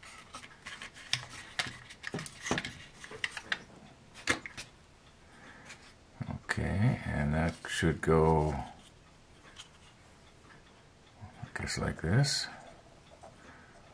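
Small plastic parts click and tap against each other.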